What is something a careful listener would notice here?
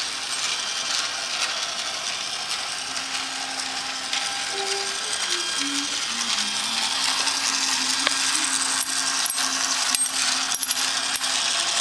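A toy train rattles around a small track.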